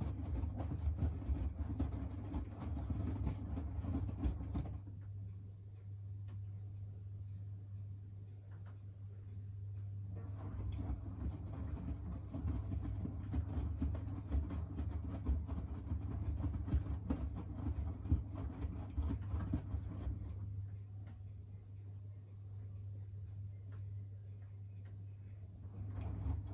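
A washing machine hums steadily.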